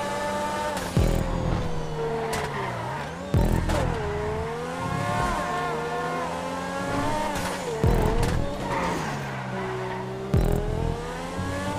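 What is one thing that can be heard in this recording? A car's exhaust pops and bangs on gear changes.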